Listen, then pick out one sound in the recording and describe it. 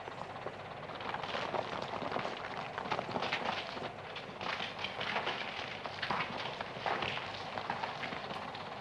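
Stones crunch and scrape underfoot.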